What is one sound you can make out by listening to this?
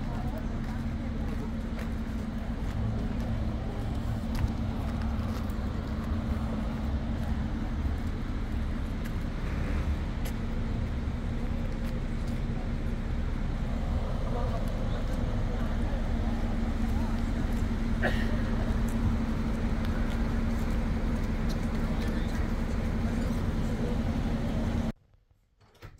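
A bus engine idles with a steady low hum nearby.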